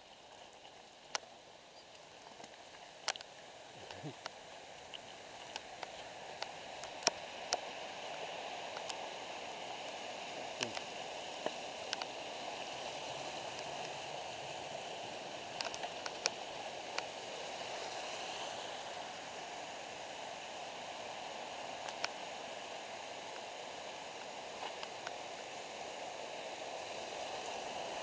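Bicycle tyres roll and crunch over a gravel trail.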